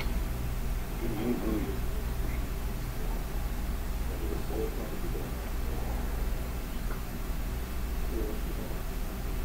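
A young man murmurs softly close by.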